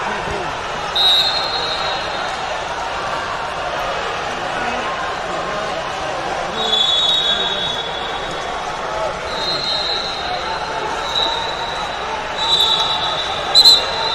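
A referee's whistle blows in short blasts.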